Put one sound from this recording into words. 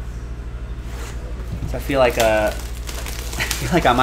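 Plastic wrap crinkles as it is torn from a box.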